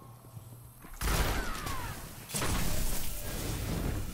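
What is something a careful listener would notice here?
A heavy gun fires in loud, booming bursts.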